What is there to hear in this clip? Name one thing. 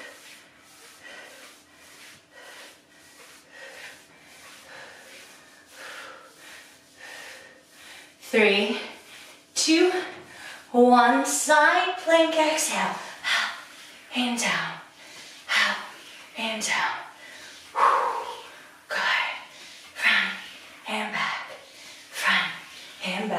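A young woman speaks steadily and clearly, close to a microphone.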